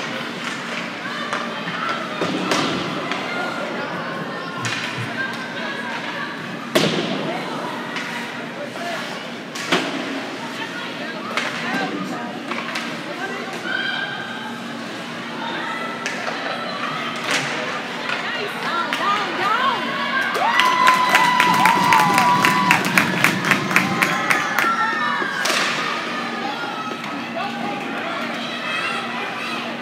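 A crowd murmurs and cheers in a large echoing rink.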